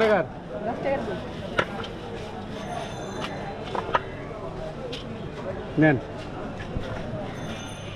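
Paper crinkles as a hand folds a paper wrapper.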